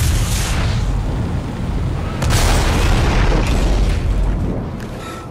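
A heavy body crashes through metal with a loud bang.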